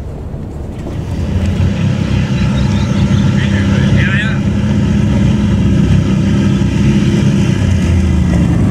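Quad bike engines rumble as they drive closer.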